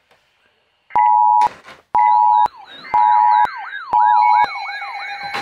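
A weather radio sounds a loud, piercing alert tone in repeated blasts.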